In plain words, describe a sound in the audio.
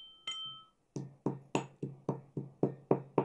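A pestle pounds steadily in a metal mortar.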